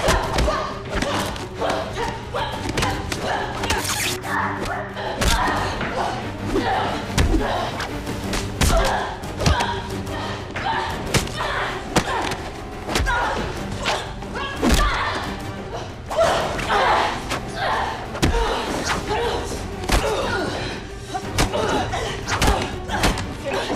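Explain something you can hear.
Punches and kicks land with sharp, heavy thuds.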